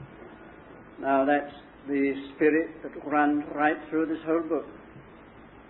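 An elderly man speaks calmly, close by.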